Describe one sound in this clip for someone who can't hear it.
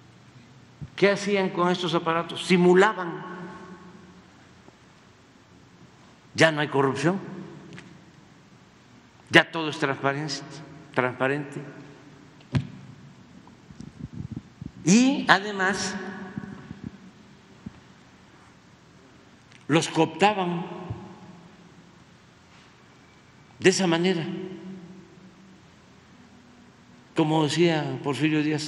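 An elderly man speaks calmly into a microphone in short phrases, with pauses, in a large echoing hall.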